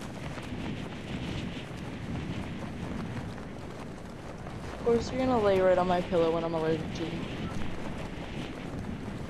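Wind rushes steadily past during a glide through the air.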